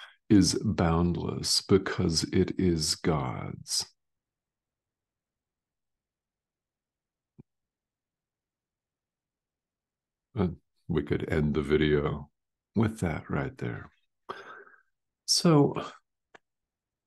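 A middle-aged man speaks calmly and closely over an online call, with pauses.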